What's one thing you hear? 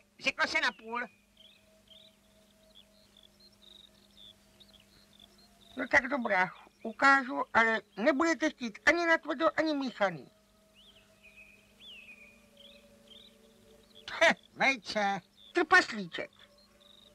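A woman speaks in a high, playful voice with animation, close and clear.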